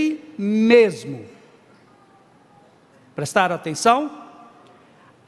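An elderly man speaks forcefully into a microphone, heard through a loudspeaker.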